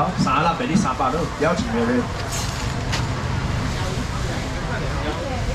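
A busy crowd murmurs in the background.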